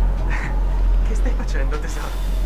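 A man speaks quietly into a microphone.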